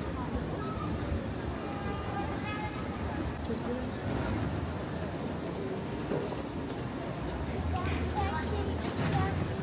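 A crowd of passers-by chatters nearby outdoors.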